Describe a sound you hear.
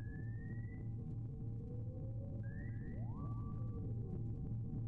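Short rising electronic beeps sound from a video game.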